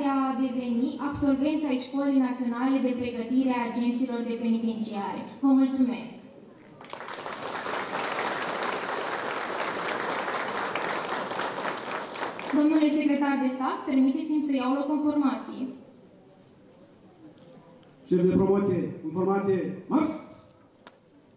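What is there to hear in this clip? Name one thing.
A young woman speaks clearly into a microphone over a loudspeaker, outdoors.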